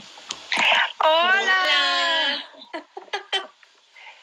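A middle-aged woman laughs over an online call.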